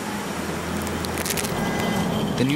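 A candy wrapper crinkles as it tears open.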